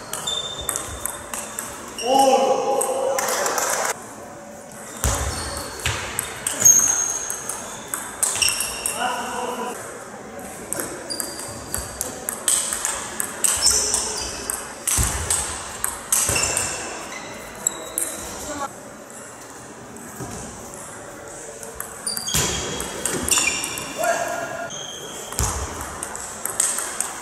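A table tennis ball clicks back and forth off paddles and the table in a rally.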